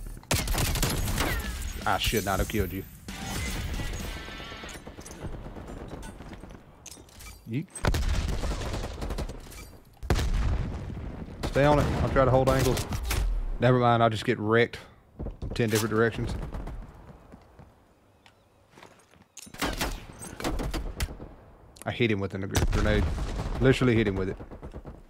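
A rifle fires sharp gunshots.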